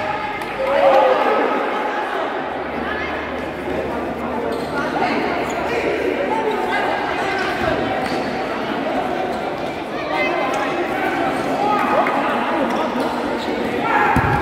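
Sneakers squeak on an indoor court.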